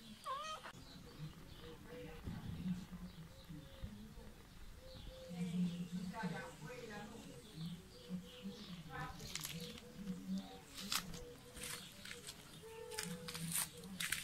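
A cat purrs softly.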